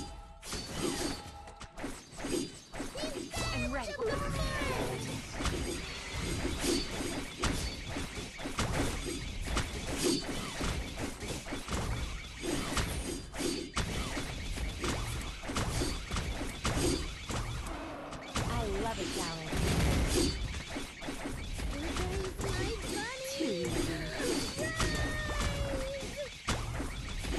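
Magic spells in a video game burst and crackle in quick succession.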